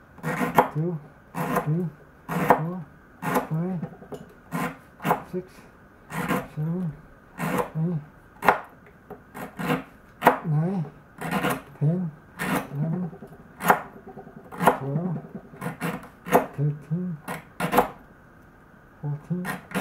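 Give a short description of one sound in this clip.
A knife whittles wood in short scraping strokes.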